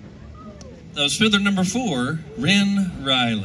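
A young man speaks with animation into a microphone, heard over loudspeakers outdoors.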